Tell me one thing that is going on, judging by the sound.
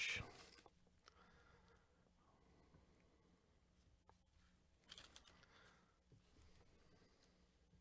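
Trading cards slide and tap softly against each other.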